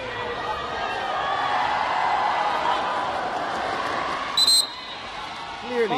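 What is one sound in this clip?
A volleyball bounces on the court floor.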